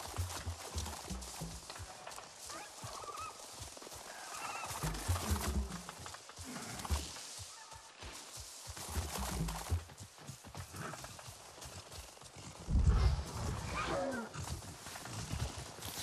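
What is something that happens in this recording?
Footsteps rustle through dense leaves and grass.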